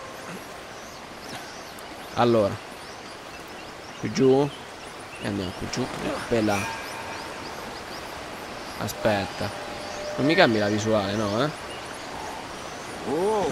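Water rushes steadily down a waterfall.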